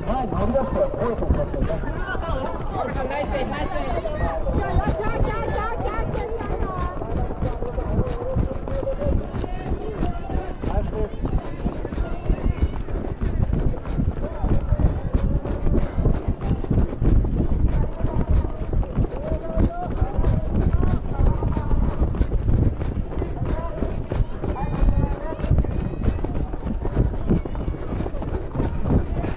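Running footsteps pound steadily on a track.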